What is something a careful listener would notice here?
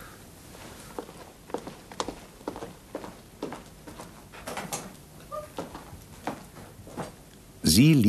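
Footsteps walk away across a hard floor.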